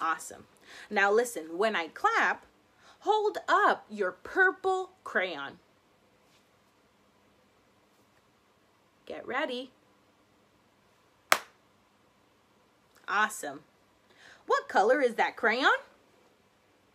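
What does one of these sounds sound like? A young woman talks animatedly close by, in short bursts with pauses.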